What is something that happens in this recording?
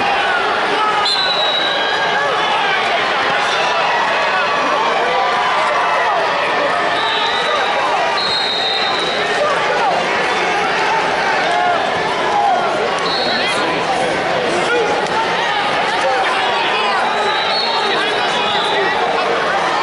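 Whistles blow shrilly from nearby mats.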